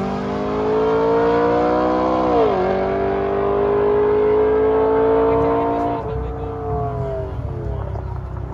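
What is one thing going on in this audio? A car engine roars at full throttle down the road, rising and dropping in pitch as it shifts gears.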